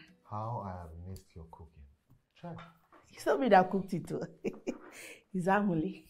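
A man laughs softly nearby.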